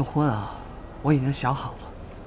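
A young woman speaks calmly and softly nearby.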